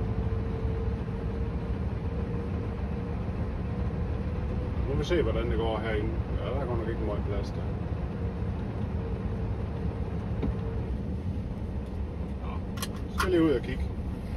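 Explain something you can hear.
A heavy truck engine rumbles low and steady as the truck slowly reverses close by.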